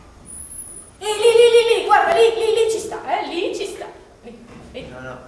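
A young woman speaks loudly with animation.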